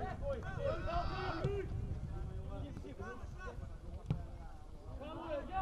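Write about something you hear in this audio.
Players shout to each other across an open field outdoors.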